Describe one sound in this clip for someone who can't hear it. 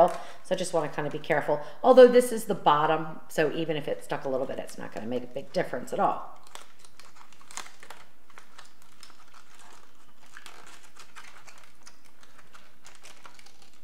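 Foil crinkles softly as it is pressed and folded.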